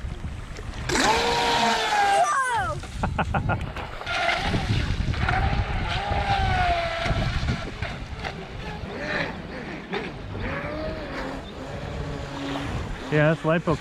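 A small toy boat motor whines at high speed and changes pitch as the boat races across the water.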